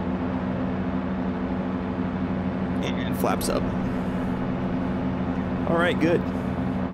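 A steady engine drone hums throughout.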